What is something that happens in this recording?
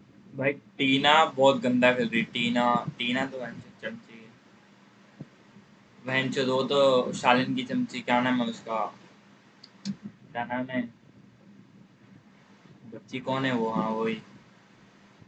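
A young man talks with animation close to a microphone, in short bursts with pauses.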